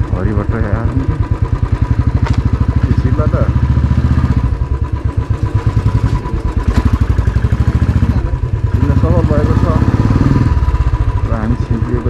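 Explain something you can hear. A motorcycle engine putters steadily up close.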